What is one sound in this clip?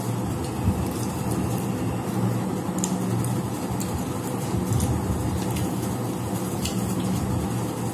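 A woman squishes rice with her fingers.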